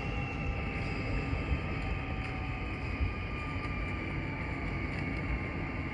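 A train rumbles steadily as it pulls away along the track.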